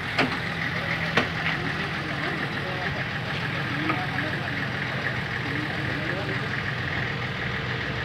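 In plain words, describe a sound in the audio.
A crowd of men and women talk over each other outdoors.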